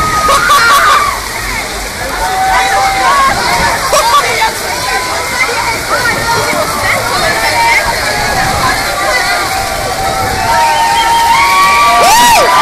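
Rain pours steadily outdoors.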